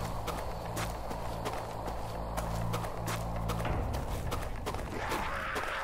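Footsteps thud quickly on a dirt path.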